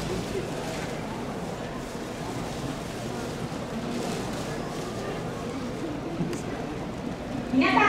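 A brass band plays outdoors.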